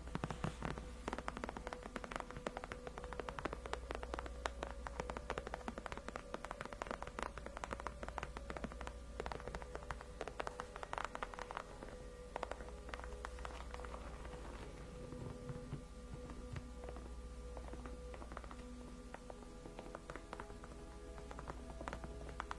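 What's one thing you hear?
Long fingernails tap and scratch on a leather chair close to a microphone.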